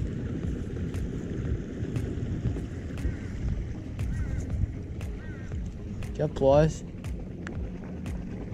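Shallow water splashes softly as someone wades.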